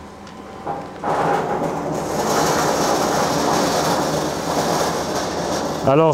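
A machine rattles steadily.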